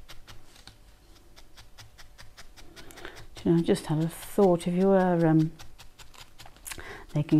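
A felting needle stabs rapidly into wool with soft, quick pokes.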